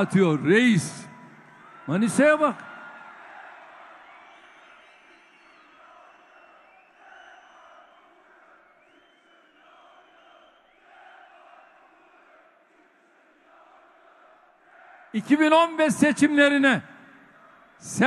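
A large crowd cheers and murmurs in the background.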